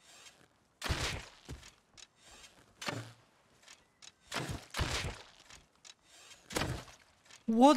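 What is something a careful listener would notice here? A bow string twangs as arrows are shot.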